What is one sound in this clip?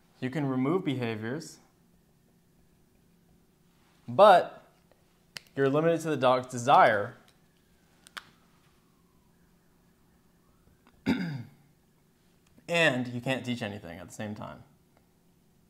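A young man speaks calmly close by, in short bursts with pauses.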